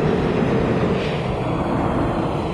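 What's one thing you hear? Train brakes squeal as the subway train slows.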